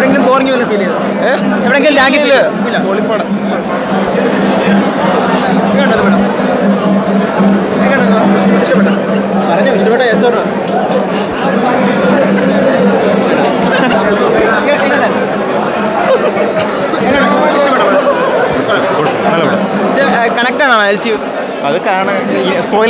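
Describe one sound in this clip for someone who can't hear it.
A crowd chatters and shouts loudly all around.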